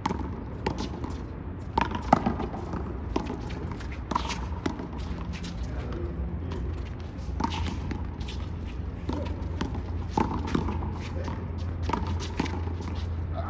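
Sneakers scuff and squeak on concrete.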